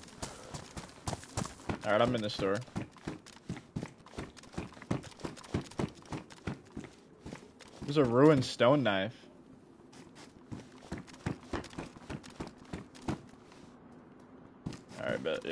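Footsteps clack quickly on a hard floor.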